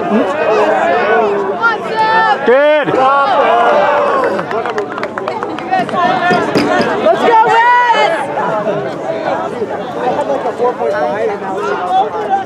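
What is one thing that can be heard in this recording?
Young players and spectators shout and call out across an open field.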